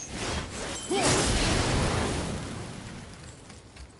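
Flames burst and roar briefly.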